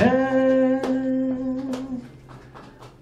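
A man sings a long held note through a microphone.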